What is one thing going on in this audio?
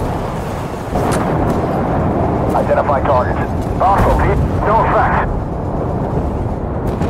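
A shell explodes with a loud blast.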